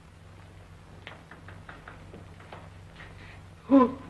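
Feet tap and scuff on a hard floor as two people dance.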